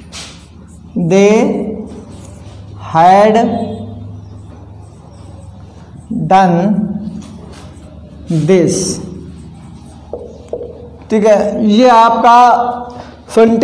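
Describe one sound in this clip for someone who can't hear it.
A man speaks slowly and clearly close by, pausing between words.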